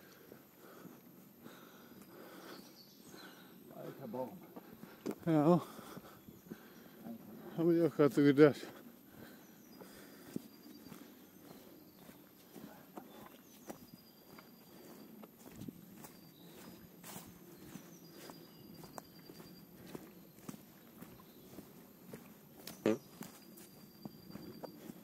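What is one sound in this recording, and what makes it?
Footsteps crunch on a dry dirt path strewn with leaves.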